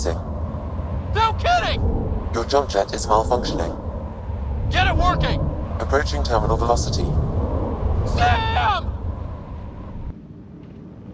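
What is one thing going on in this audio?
Wind rushes loudly past a falling figure.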